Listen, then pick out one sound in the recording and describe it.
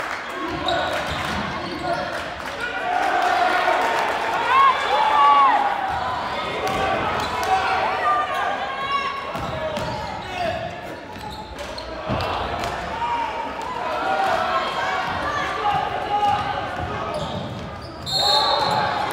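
A crowd of spectators cheers and chatters in a large echoing gym.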